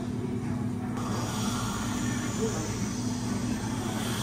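A whipped cream dispenser hisses.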